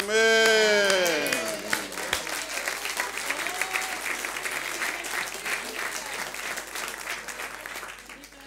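A man claps his hands repeatedly.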